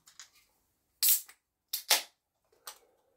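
A can's tab pops open with a hiss.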